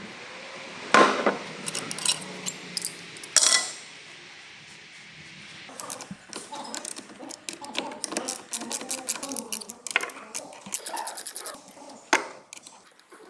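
Metal tools clink and knock against engine parts.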